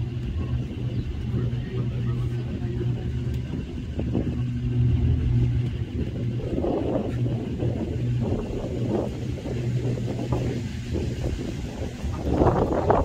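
A cable car motor hums steadily.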